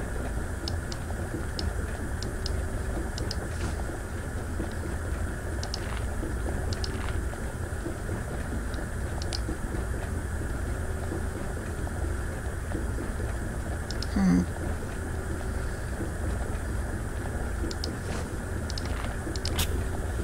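Liquid bubbles softly in glass flasks.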